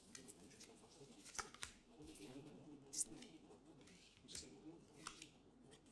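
Cards tap softly onto a wooden table.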